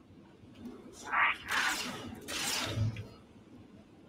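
A plasma weapon fires with hissing bursts.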